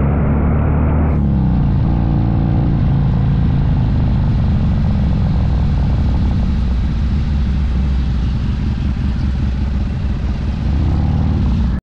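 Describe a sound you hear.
Wind buffets loudly.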